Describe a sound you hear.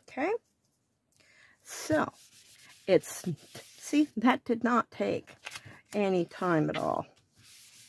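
Paper rustles as it is lifted and turned.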